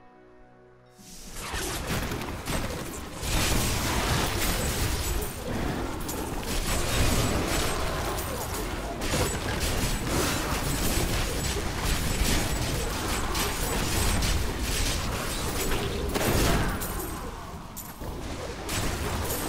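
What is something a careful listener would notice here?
Fiery spells blast and crackle in a fast, dense battle.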